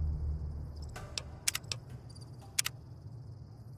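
Game menu clicks sound sharply a few times.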